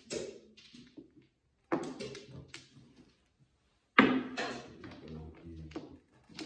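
Mahjong tiles click and clack against each other on a table.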